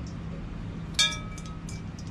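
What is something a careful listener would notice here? A metal bowl clinks against a wooden board.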